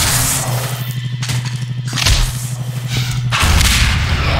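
An energy beam weapon hums and crackles as it fires.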